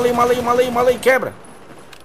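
An automatic rifle fires a burst.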